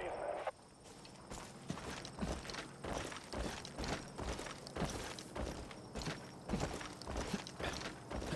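Footsteps crunch steadily on a dirt trail.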